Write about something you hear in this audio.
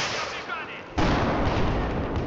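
A large explosion roars close by.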